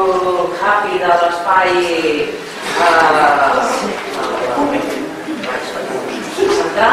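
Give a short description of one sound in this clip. A man speaks through a microphone in a room with a slight echo.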